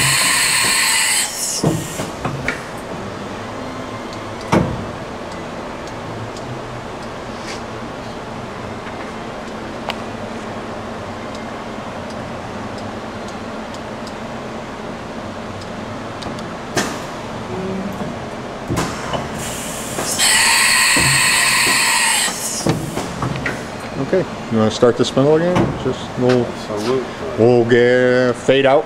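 A machine hums steadily.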